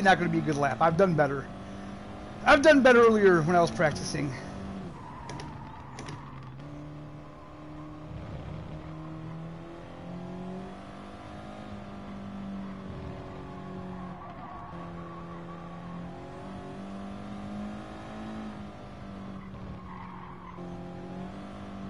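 A car engine hums steadily, its pitch rising and dropping as it shifts gears.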